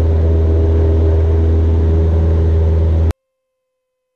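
A small plane's engine drones loudly and steadily.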